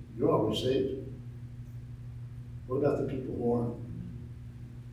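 An older man speaks slowly and calmly through a microphone.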